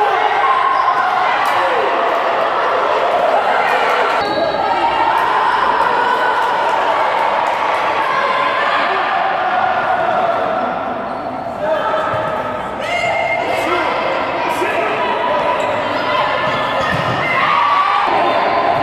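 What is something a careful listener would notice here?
Young women shout to each other across a large echoing hall.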